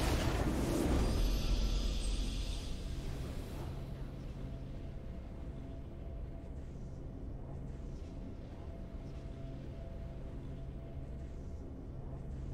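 A victory fanfare swells in a game.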